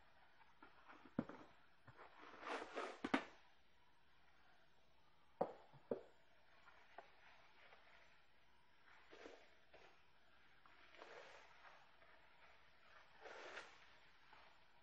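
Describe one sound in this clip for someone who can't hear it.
Plastic bubble wrap crinkles and rustles under handling hands.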